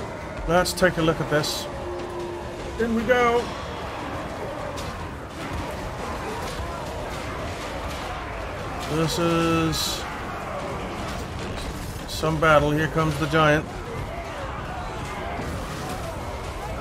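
A large army charges across the ground with a steady, rumbling battle din.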